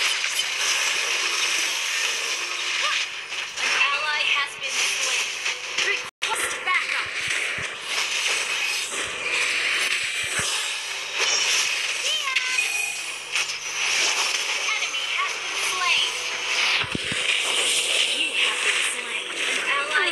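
Game spell effects whoosh, crackle and burst throughout.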